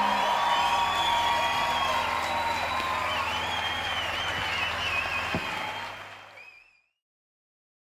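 A large crowd cheers and whistles in a big echoing hall, then fades out.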